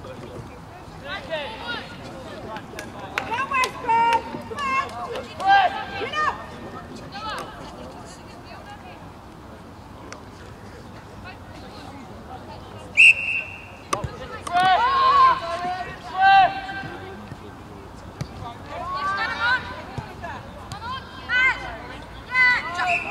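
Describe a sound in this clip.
Male players shout and call to each other across an open outdoor field.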